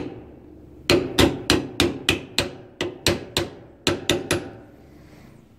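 Metal knocks sharply against metal in quick taps.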